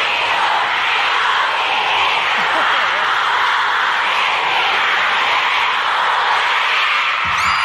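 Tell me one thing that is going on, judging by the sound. A young man sings into a microphone over loudspeakers in a large echoing hall.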